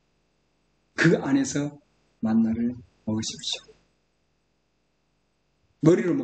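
A middle-aged man speaks calmly and clearly into a microphone, in short phrases with pauses.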